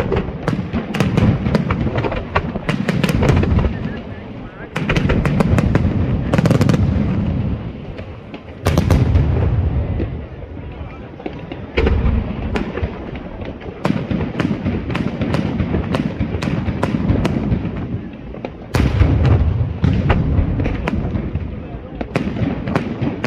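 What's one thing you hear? Fireworks crackle and sizzle in rapid bursts.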